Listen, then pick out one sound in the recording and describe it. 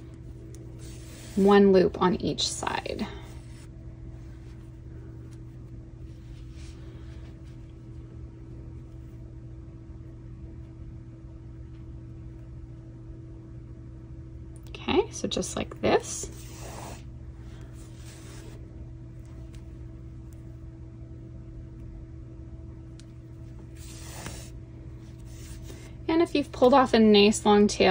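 Yarn rustles softly as it is pulled through knitted fabric.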